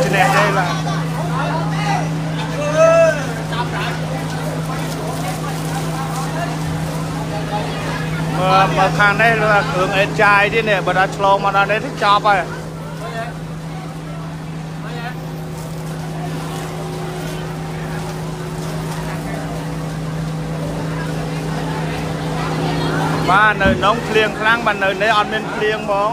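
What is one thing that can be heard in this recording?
Men shout excitedly nearby.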